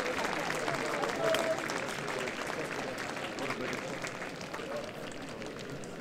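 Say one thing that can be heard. Players clap their hands in applause.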